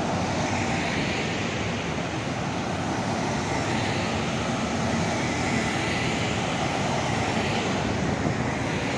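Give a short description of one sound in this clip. Outdoors, a steady hum of traffic fills the air.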